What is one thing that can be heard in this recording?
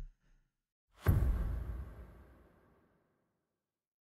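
A deep whoosh swells and fades.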